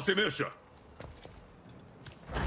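An axe swings through the air with a swoosh.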